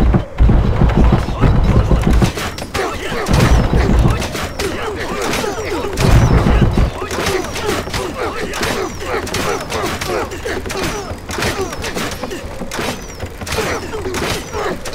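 Metal weapons clash and clang rapidly in a battle.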